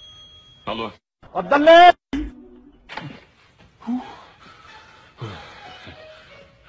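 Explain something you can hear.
A young man talks on a phone close by, with animation.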